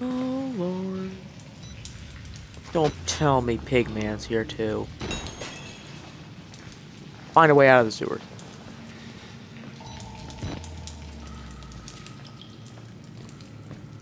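Footsteps splash through shallow water in an echoing tunnel.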